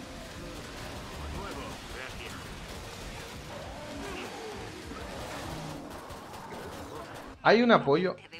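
Busy combat noises clatter and crunch with thuds and blasts.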